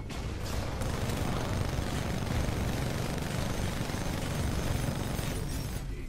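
Large explosions rumble nearby.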